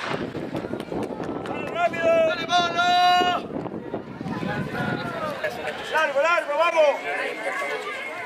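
Spectators cheer and shout from a distance.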